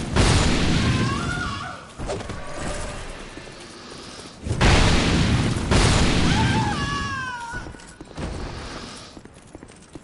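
Heavy sword blows crash and clang in a fight.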